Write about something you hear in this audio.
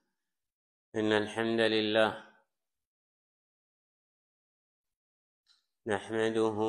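An elderly man chants loudly into a microphone.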